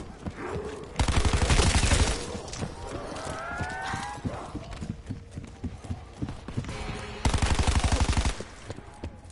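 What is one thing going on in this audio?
An automatic rifle fires rapid, loud bursts.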